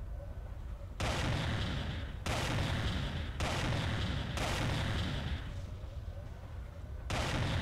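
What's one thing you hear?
Weapons fire in loud roaring bursts.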